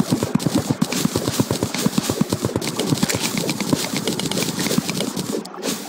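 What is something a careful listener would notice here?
A pickaxe chips rapidly at stone with quick dull thuds.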